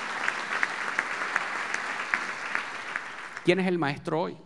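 An audience applauds in a hall.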